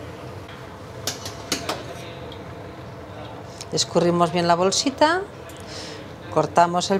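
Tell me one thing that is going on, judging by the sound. A metal utensil clinks against a pan and a plate.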